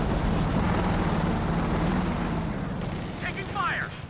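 A tank engine rumbles as the tank moves along.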